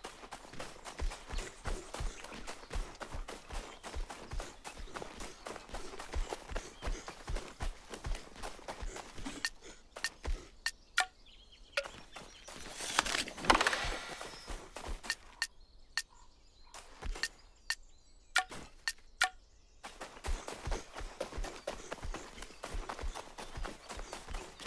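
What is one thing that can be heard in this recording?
Quick footsteps run through grass.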